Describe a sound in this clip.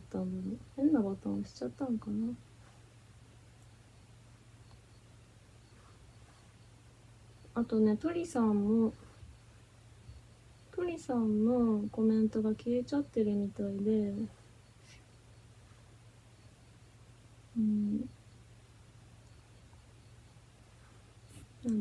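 A young woman talks calmly and close by, in short bursts.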